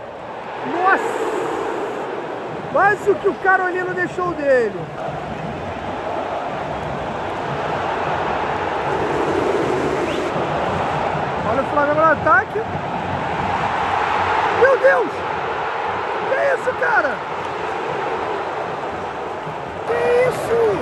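A large crowd chants and roars in an open stadium.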